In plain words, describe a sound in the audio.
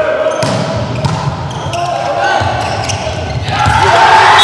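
A volleyball is struck with sharp slaps in a large echoing hall.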